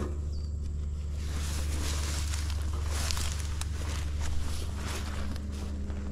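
Footsteps rustle through dry brush and weeds.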